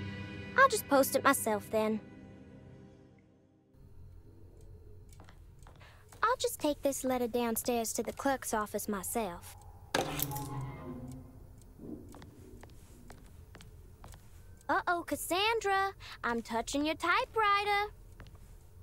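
A young girl speaks calmly and close by.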